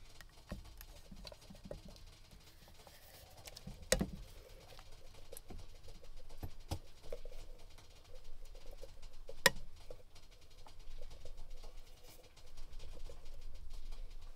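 Crumbly food rustles and patters as it is shaken from a can into a pan.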